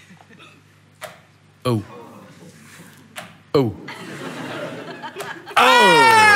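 A dart thuds into a board, three times.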